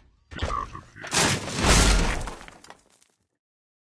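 A heavy metal structure crashes down with a loud clatter.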